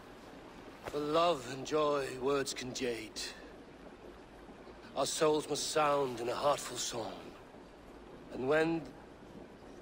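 A man speaks in a low, deep voice.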